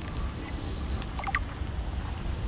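A bright chime sounds as a scan completes.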